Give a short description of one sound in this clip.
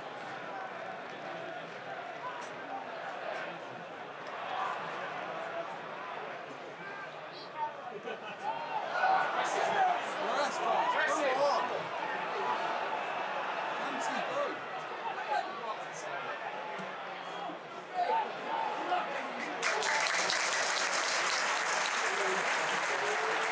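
A large stadium crowd murmurs and chants all around, with voices rising at times.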